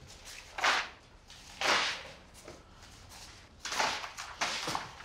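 Fingers tap on a laptop keyboard.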